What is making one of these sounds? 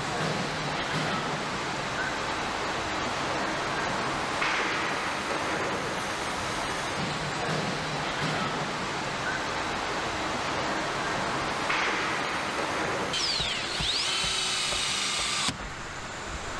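Machinery hums and clatters steadily in a large echoing hall.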